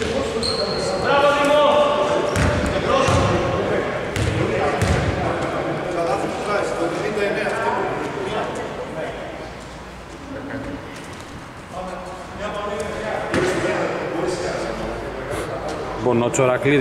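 Men shout and talk nearby in a large echoing hall.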